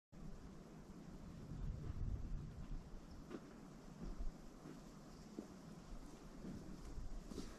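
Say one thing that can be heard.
Footsteps crunch on dry grass nearby.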